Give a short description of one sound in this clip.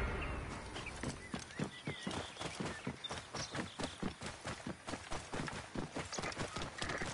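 A camel's hooves thud steadily on dry ground.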